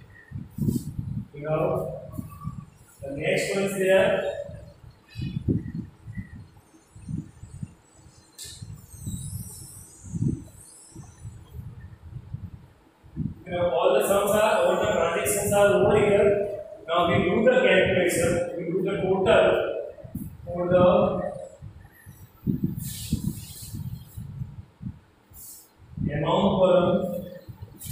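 A man speaks calmly and clearly, close by.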